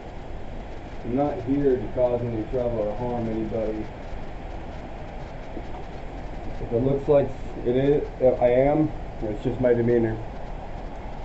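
A young man speaks calmly into a nearby microphone.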